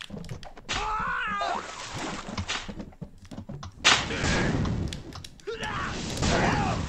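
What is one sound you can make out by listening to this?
Playful game sound effects whoosh and pop.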